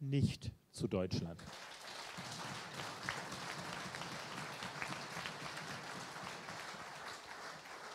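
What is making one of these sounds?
A middle-aged man speaks into a microphone through loudspeakers.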